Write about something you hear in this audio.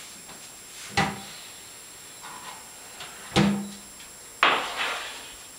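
Cupboard doors knock shut.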